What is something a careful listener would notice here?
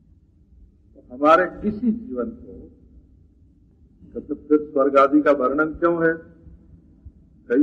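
An elderly man speaks calmly and slowly.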